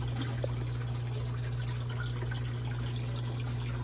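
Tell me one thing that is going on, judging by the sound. A thin stream of water trickles and splashes into a pond.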